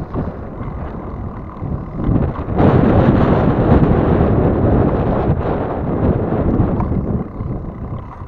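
Wind buffets the microphone loudly outdoors.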